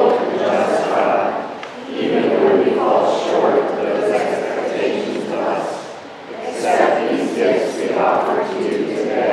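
A group of men and women read aloud together in unison in an echoing hall.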